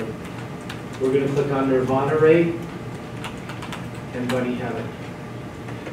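A man speaks briefly in a room with some echo.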